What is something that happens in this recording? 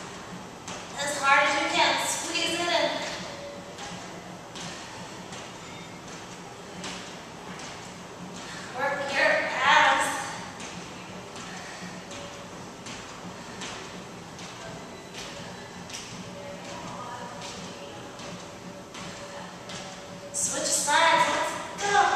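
A woman speaks with energy, close by.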